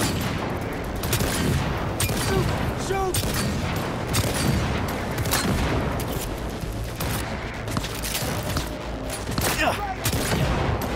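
Gunshots crack repeatedly from close by.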